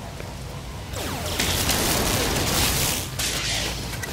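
A sci-fi mining beam fires with a loud, hissing buzz.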